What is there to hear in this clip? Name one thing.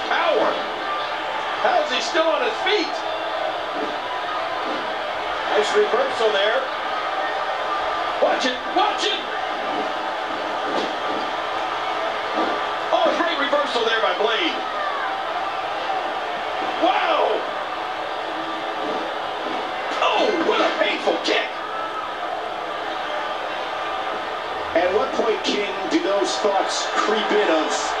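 Wrestlers' bodies thud and slam against each other.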